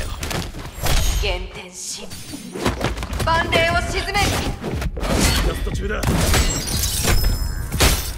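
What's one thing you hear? Magic blasts burst with a loud whoosh.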